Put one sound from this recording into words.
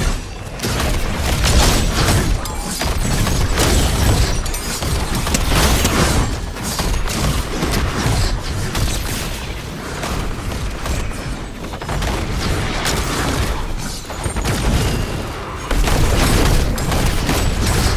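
Game creatures crash and explode as they are hit.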